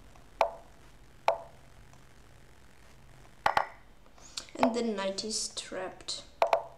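Short wooden clicks of chess moves sound from a computer.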